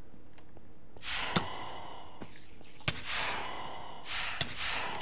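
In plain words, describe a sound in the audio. A blade swishes through the air in quick swings.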